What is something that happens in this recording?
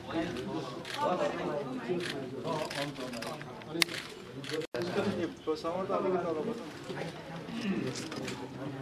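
Several men talk and chatter nearby.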